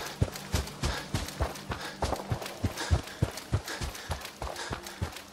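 Footsteps crunch steadily over dry ground.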